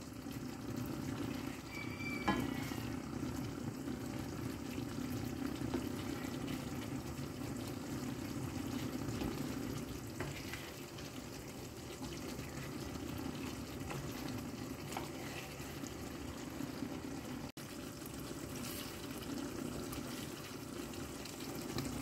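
Thick sauce bubbles and simmers steadily in a pan.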